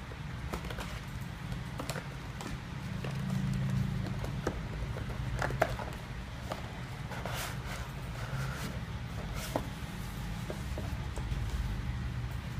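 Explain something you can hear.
Cardboard packaging rustles and scrapes as a box is opened and unpacked.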